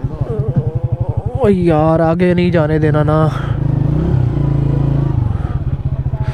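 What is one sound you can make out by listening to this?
A small engine putters steadily and briefly revs higher.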